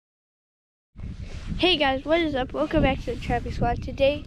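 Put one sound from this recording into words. A young girl talks with animation close by.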